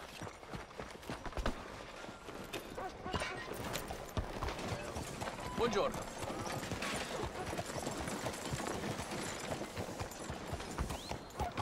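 Horse hooves clop on a dirt street.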